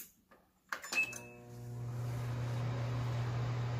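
A microwave oven hums steadily as it runs.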